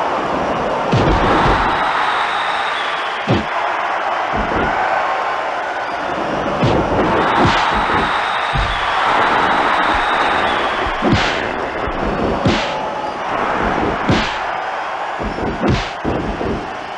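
Heavy blows thud and slam on a wrestling ring.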